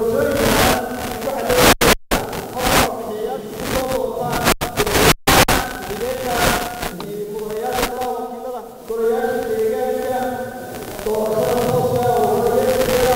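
A man speaks formally into a microphone, heard through a loudspeaker in an echoing hall.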